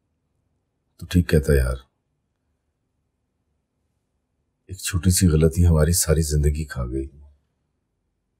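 A middle-aged man answers in a low, calm voice, up close.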